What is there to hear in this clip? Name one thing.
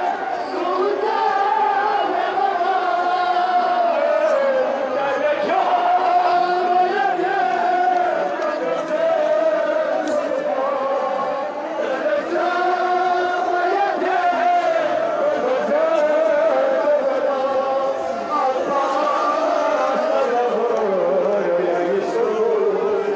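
A large crowd of men chants a slow lament together outdoors.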